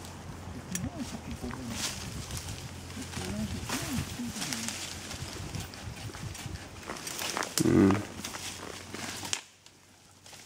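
A horse's hooves thud and rustle through undergrowth.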